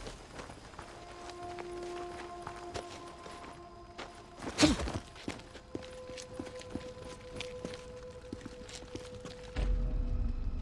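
Footsteps scrape and tap on rock.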